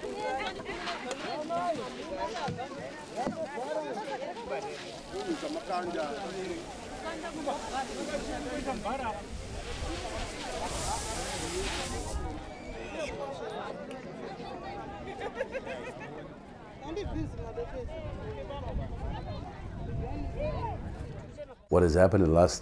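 Many people talk at once outdoors.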